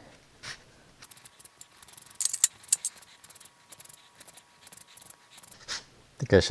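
A zester scrapes rapidly against a lemon's peel.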